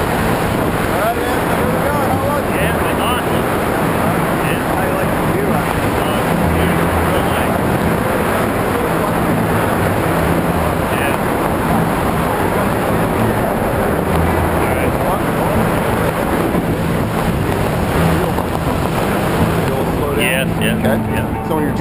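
Wind roars loudly and steadily against a microphone.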